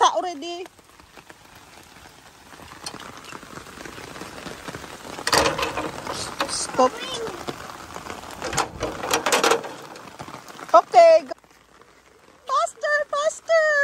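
A young child babbles and squeals nearby.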